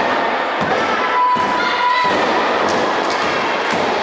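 Wrestlers thud heavily onto a ring mat.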